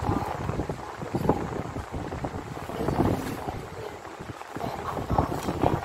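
A sheet of paper slides softly across a tabletop.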